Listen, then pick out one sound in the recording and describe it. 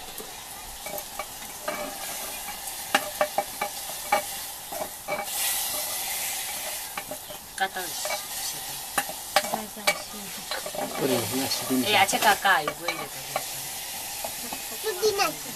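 A spoon scrapes and knocks against a metal pan.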